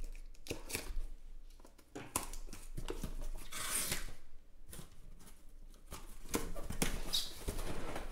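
Cardboard flaps rustle and scrape as a box is opened.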